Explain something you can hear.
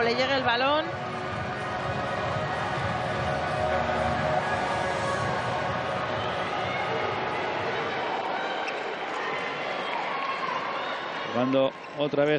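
A large crowd cheers and chants in an echoing arena.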